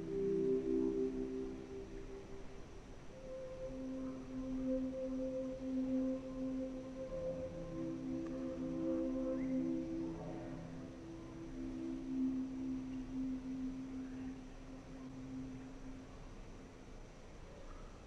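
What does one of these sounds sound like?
Soft electronic music plays with long held notes and slowly fades away.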